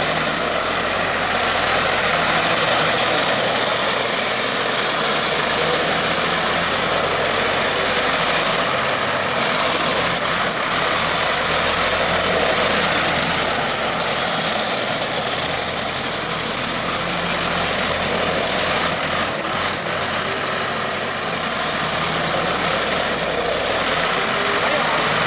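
Steel crawler tracks clank and rattle on concrete.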